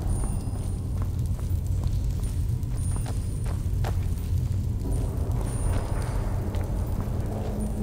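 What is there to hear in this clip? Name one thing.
Footsteps scuff over stone.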